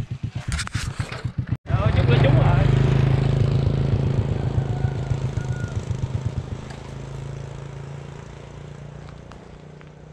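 A motorbike engine hums close by and slowly fades away.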